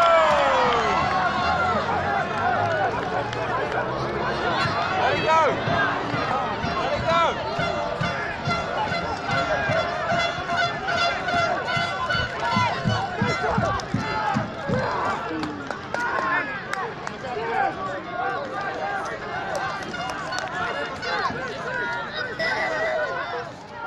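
Men shout across a playing field.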